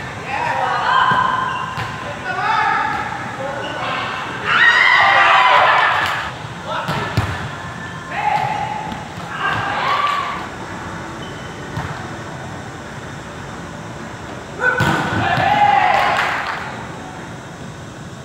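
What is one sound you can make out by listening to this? Young players shout and call out to each other in a large echoing hall.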